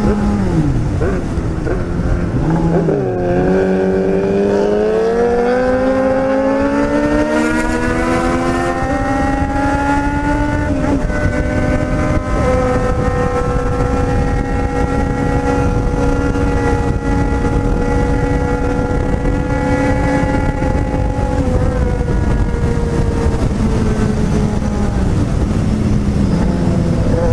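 A motorcycle engine roars up close, rising in pitch as it speeds up and shifting gears.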